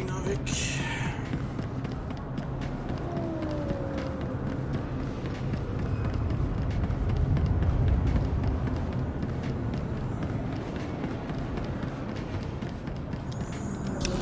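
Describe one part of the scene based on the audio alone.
Footsteps patter quickly on a hard metal floor.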